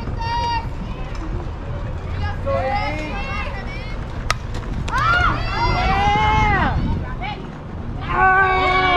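Young women shout and cheer from across an open field.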